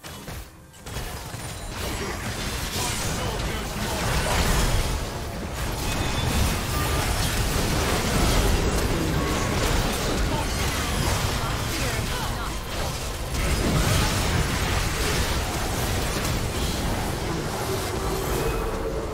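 Loud game spell effects whoosh, crackle and clash in a busy fight.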